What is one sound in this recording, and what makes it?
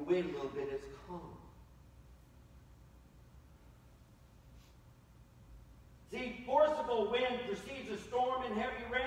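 A middle-aged man preaches with animation through a microphone in a large room, pausing between phrases.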